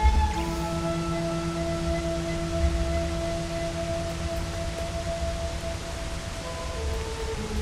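A stream of water rushes steadily nearby.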